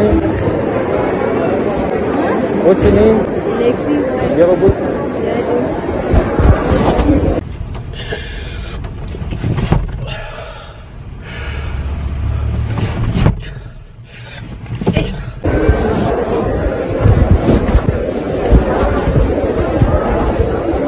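A crowd of young people chatters.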